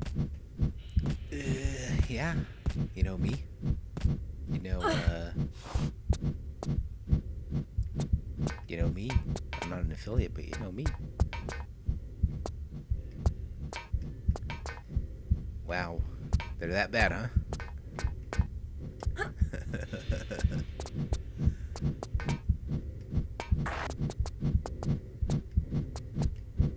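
Footsteps tap quickly and evenly on a metal floor.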